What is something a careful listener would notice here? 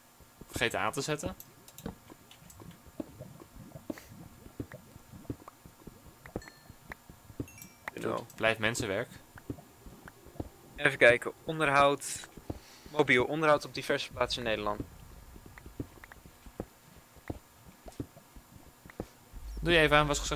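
A young man talks into a close microphone in short bursts.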